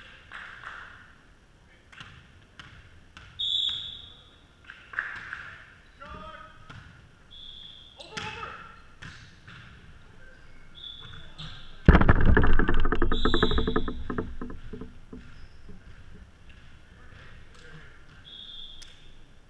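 A volleyball is struck with sharp smacks in a large echoing gym.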